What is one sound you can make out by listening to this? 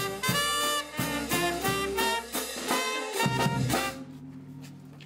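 A brass band plays loudly.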